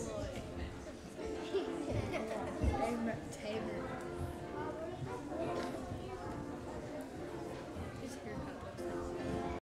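A piano plays in a large echoing hall.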